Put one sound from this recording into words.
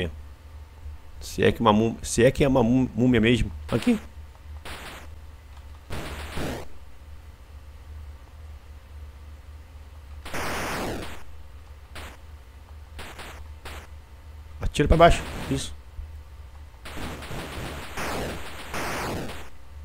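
Electronic game sound effects beep and buzz in short bursts.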